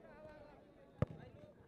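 A football is kicked with a sharp thud.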